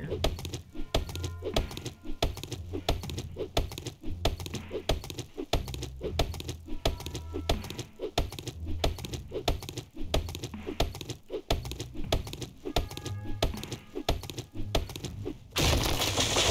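An axe chops into a tree trunk with dull, repeated thuds.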